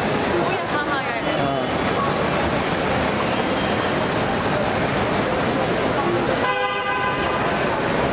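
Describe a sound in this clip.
A crowd of people chatters and calls out all around.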